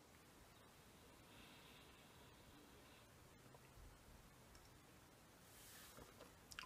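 A man sips a drink up close.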